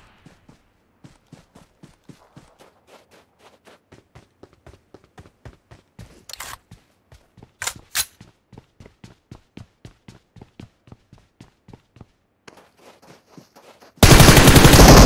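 Footsteps run quickly and steadily.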